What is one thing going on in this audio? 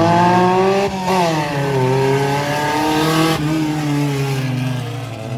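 Tyres roll over wet pavement.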